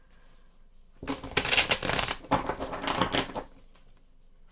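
Playing cards riffle and rustle as a deck is shuffled.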